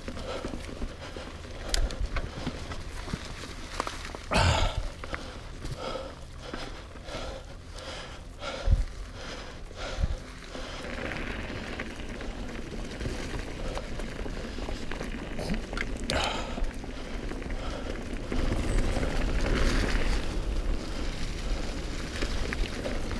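Wind rumbles past outdoors.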